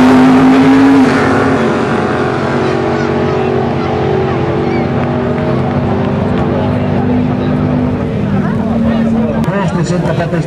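Race car engines drone on as the cars speed away into the distance.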